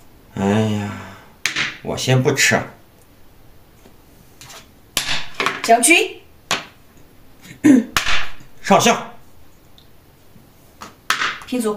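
Game pieces click down onto a board.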